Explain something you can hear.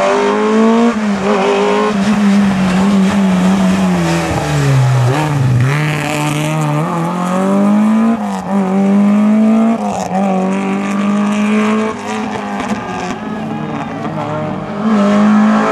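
A rally car engine revs hard, its pitch rising and falling through gear changes.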